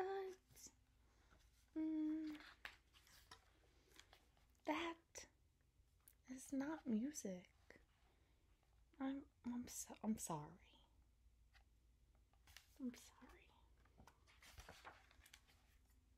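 Book pages rustle as a woman turns them.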